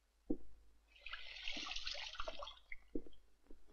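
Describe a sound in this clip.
Water splashes and pours into a bath.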